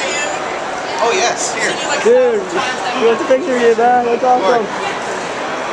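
Young adults talk excitedly close by.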